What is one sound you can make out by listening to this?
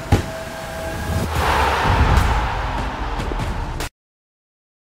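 A loud stadium crowd roar swells and cuts off abruptly.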